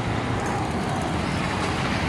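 A motorcycle engine buzzes as it passes.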